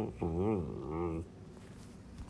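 A man speaks into a microphone with a drawn-out, wavering voice.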